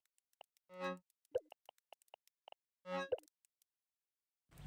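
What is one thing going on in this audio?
Soft game menu chimes and clicks sound.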